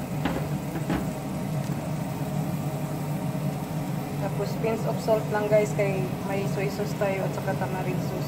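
Shrimp sizzle softly in a hot pan.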